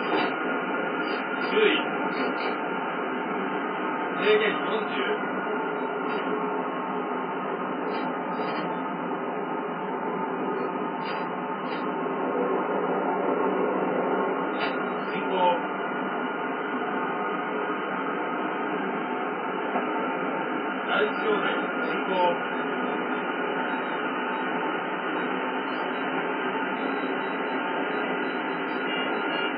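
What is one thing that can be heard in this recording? A train rumbles steadily along its tracks, heard through a television speaker.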